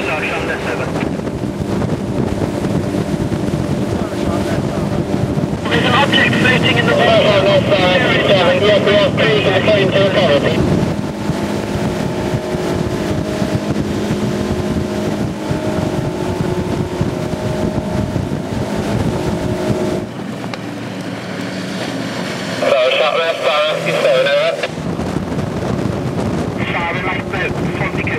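A boat's outboard engine roars steadily.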